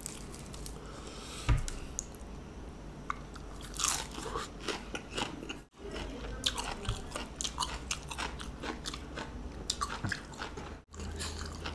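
A young man chews crunchy leaves with loud wet mouth sounds.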